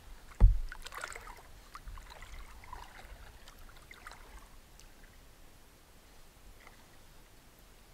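Water laps gently against rocks.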